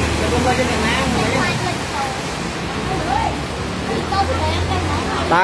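Rain pours steadily onto flooded ground.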